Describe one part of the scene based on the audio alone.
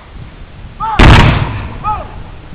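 A volley of musket fire booms out in the open and echoes away.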